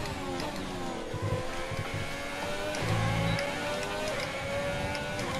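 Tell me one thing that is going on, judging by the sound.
A racing car engine screams at high revs, its pitch rising and falling with gear changes.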